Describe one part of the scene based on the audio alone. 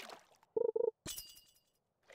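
A bright chime rings as a fish bites.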